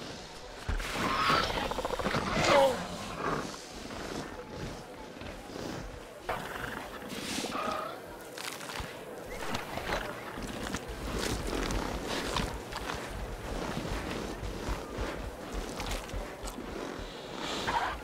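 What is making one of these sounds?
Raptor-like creatures screech and chirp.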